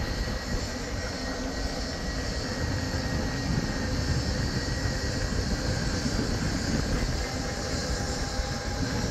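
A small motor scooter hums steadily ahead.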